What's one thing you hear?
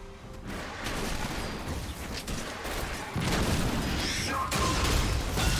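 Magic spells crackle and whoosh in a video game battle.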